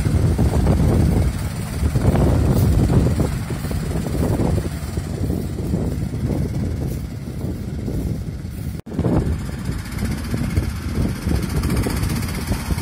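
An off-road vehicle engine rumbles as it drives through mud.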